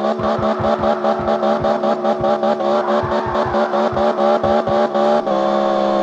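Tyres screech as a car drifts through a turn.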